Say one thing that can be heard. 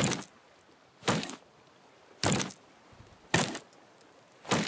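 An axe chops into a tree trunk with sharp knocks.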